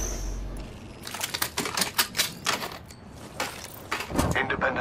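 A weapon clicks and rattles as it is handled.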